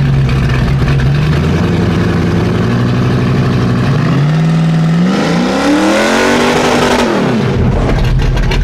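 A car engine revs up hard, rising to a roar and then dropping.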